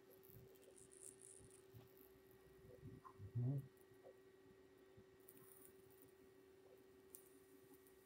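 A small metal part rattles and clicks softly as a hand handles it.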